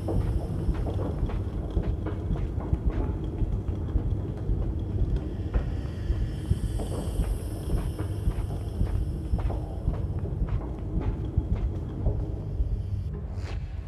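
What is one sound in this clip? A crane motor rumbles steadily as it moves along an overhead rail.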